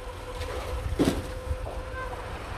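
A heavy concrete post falls and crashes onto rubble with a loud thud.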